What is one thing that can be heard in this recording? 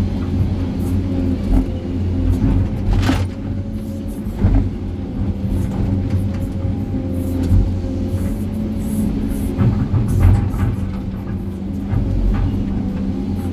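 Rocks thud and clatter as they are dumped into a truck bed.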